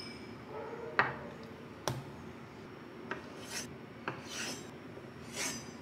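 A knife taps sharply on a wooden board.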